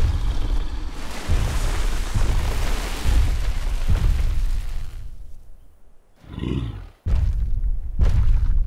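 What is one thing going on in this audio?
Heavy footsteps of a huge creature thud slowly on sand.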